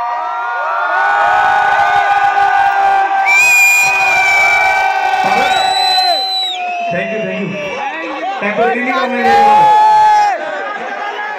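A large crowd cheers and screams.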